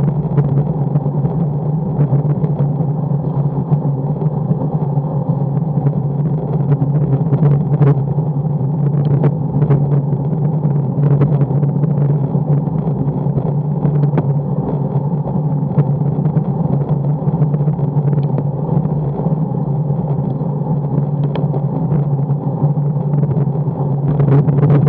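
Wind rushes steadily and loudly past a fast-moving bicycle.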